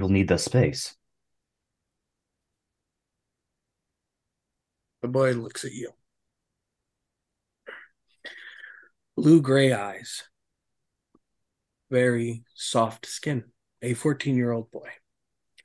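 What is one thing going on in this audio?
A man speaks with animation over an online call, in short bursts with pauses.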